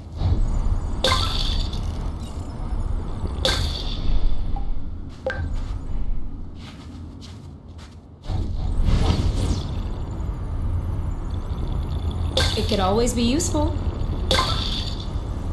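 Short bright chimes ring out now and then.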